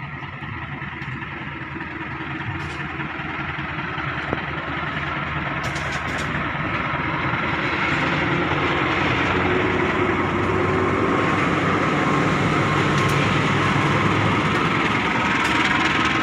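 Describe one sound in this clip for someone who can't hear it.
A diesel locomotive rumbles closer and roars past.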